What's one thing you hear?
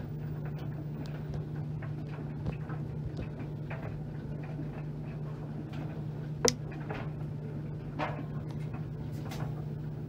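A washing machine drum hums steadily as it turns.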